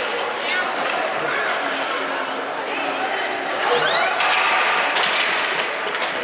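Children shout and call out across the rink.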